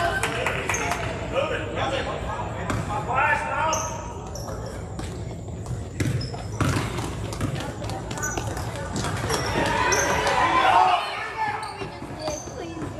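Young women call out to each other during play in an echoing hall.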